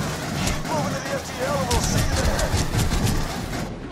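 Gunfire from a rifle rattles in rapid bursts.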